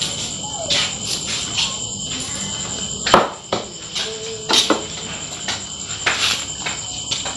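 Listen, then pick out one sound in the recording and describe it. A knife chops vegetables on a board with quick taps.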